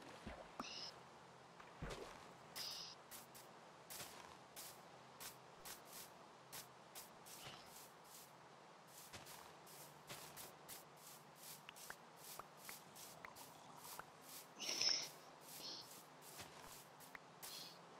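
Footsteps fall steadily and quickly on grass.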